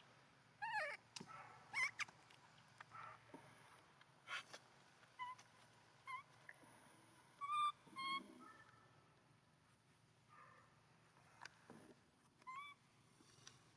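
A baby monkey squeaks and cries in short high calls.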